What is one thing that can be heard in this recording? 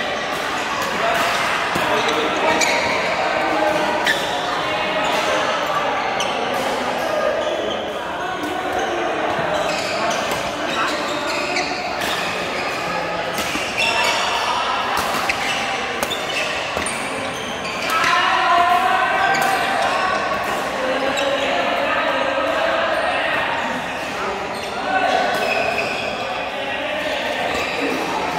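Players' shoes squeak on the court floor.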